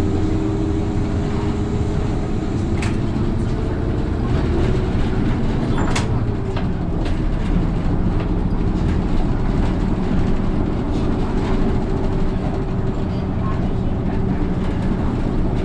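Interior fittings of a bus rattle and clatter over the road.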